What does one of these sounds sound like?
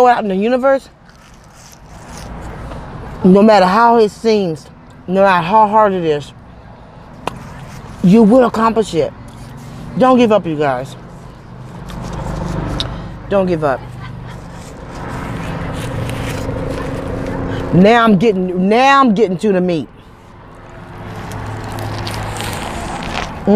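A woman chews food noisily.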